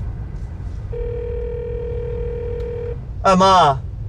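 A phone rings through the car's speakers.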